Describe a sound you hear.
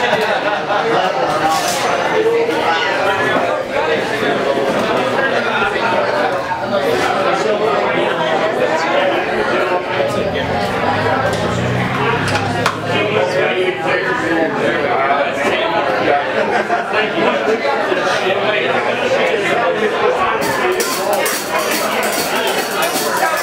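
A man strums an acoustic guitar loudly.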